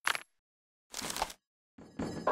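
Metal parts clatter and clank as they fall.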